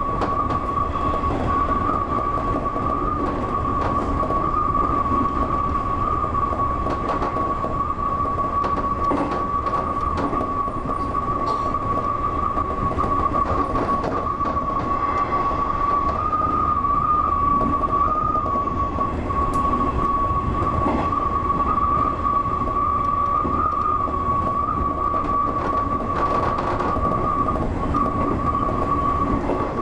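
An electric motor whines at a steady high pitch.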